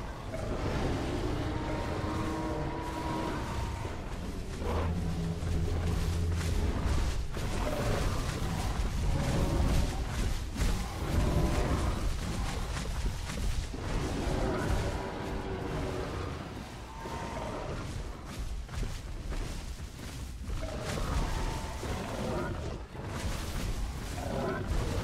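Heavy dinosaur footsteps thud on the ground.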